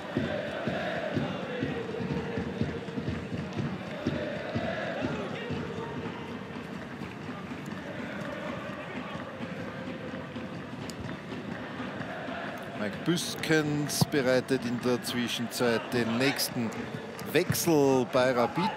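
A large crowd chants and sings loudly in a big open stadium.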